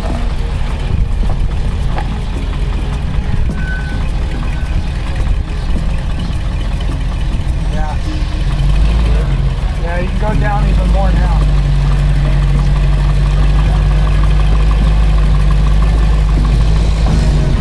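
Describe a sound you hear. An engine rumbles low as a four-wheel-drive vehicle crawls over rocks, revving harder.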